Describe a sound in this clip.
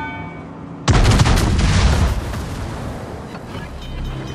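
Shells burst with heavy blasts.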